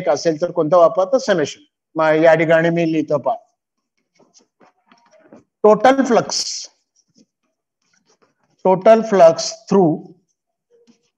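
A man speaks calmly and clearly in short phrases, close by.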